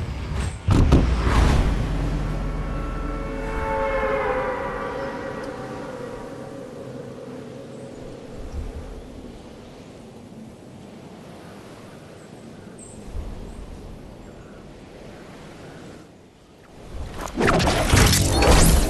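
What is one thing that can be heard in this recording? Wind rushes past.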